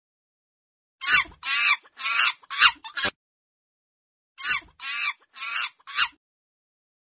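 A monkey chatters with quick high-pitched squeaks.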